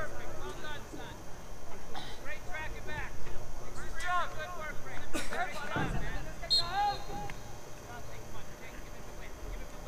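Spectators talk and call out nearby, outdoors in the open.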